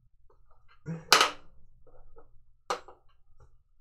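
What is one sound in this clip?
Metal parts click and clack under a hand.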